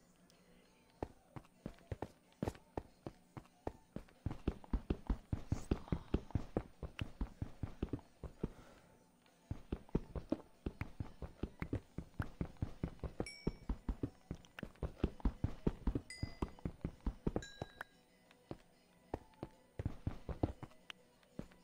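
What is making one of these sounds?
A pickaxe taps rapidly at stone, blocks cracking apart.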